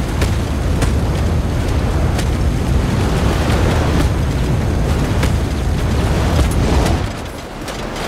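A flamethrower roars, spraying a burst of fire.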